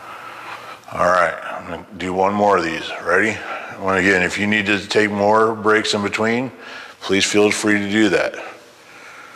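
A man speaks calmly in an echoing hallway.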